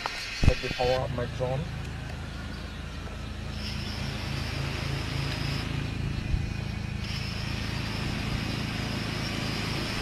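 Small drone motors whir with a steady hum.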